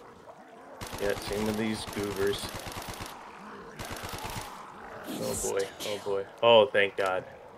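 A monster growls and snarls nearby.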